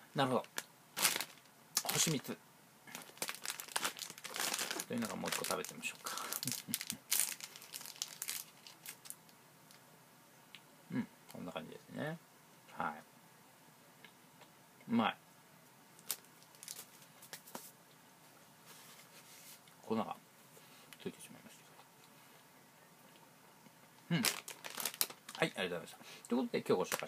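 A plastic snack bag crinkles in a man's hands.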